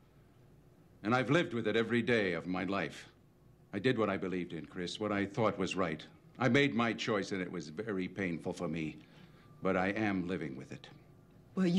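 An older man speaks firmly and closely.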